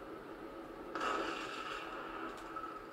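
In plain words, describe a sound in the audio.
A shotgun fires a single loud blast.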